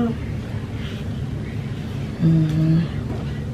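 Fabric rustles as a young girl handles a shirt.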